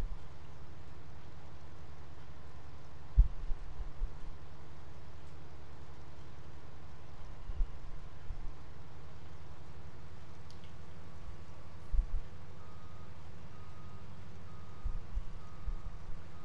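Grain pours from an unloading spout.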